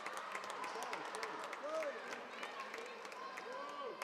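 Young women players shout and cheer close by.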